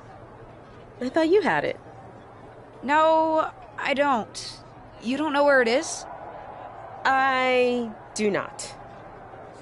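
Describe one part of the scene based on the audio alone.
A second young woman answers in a calm voice close to the microphone.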